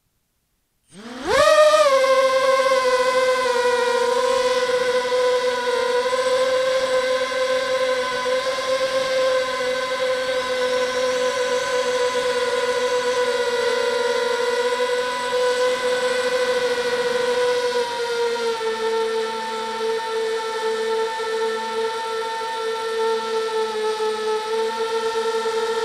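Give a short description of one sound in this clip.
A drone's motors spin up with a rising whine, then hum steadily up close.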